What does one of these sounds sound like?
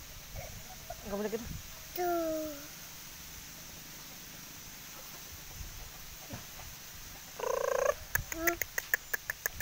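A chicken clucks nearby.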